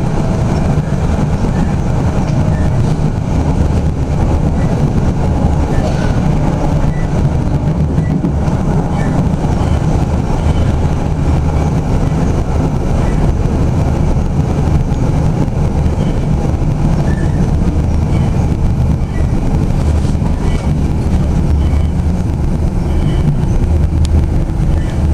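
A tram rolls along rails, heard from the cab.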